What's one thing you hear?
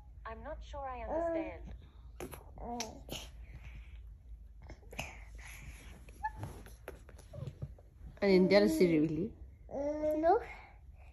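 A young child talks and babbles in a high voice close by.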